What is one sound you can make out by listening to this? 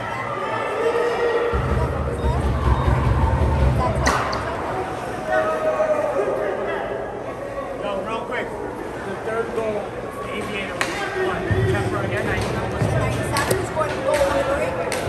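Voices of players and spectators echo in a large rink.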